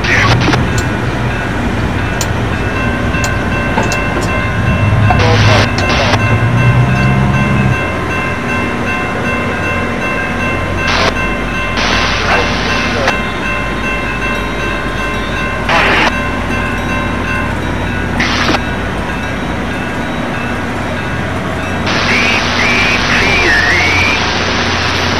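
A diesel locomotive engine idles with a low rumble.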